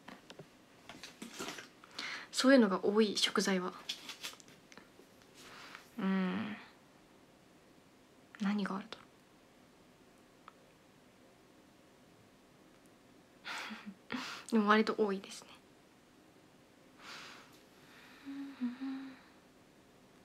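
A young woman speaks softly and casually, close to a microphone, in short bursts.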